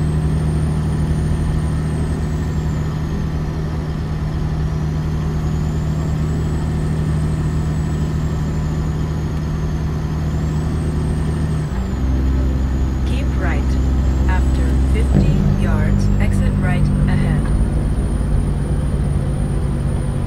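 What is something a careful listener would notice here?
A truck engine rumbles steadily and shifts pitch as gears change.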